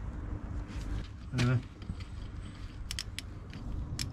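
A ratchet clicks as it turns a bolt.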